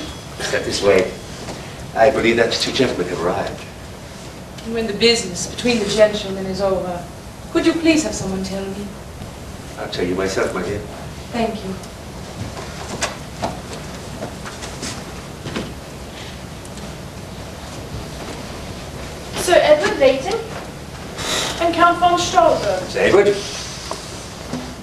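A man speaks on a stage, heard from the audience in a hall.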